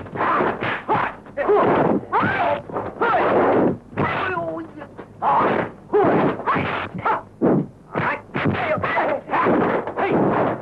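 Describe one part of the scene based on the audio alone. Punches and kicks whoosh through the air and land with sharp thuds.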